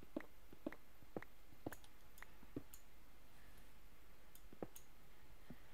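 A pickaxe chips at stone with quick, repeated knocks.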